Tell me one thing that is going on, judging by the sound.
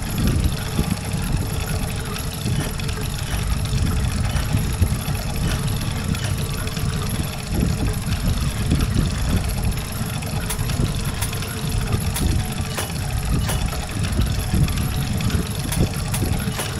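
Small metal gears click into place on a board.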